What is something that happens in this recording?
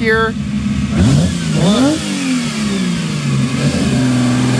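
A sports car engine revs up sharply and falls back as the car rolls slowly past close by.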